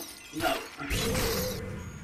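A figure shatters with a loud crash of breaking glass.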